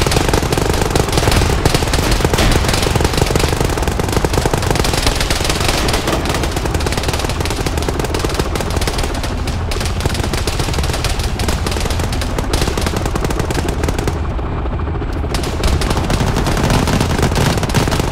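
Dense gunfire rattles in rapid bursts.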